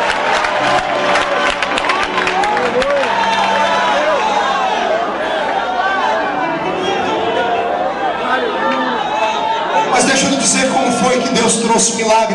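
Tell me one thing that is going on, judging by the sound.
A crowd sings and calls out in a large echoing hall.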